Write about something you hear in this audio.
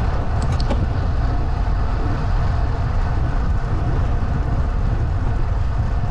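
Tyres hum steadily on an asphalt road.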